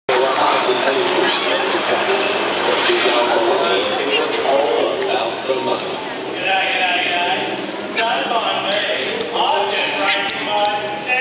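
Water fountains spray and splash steadily.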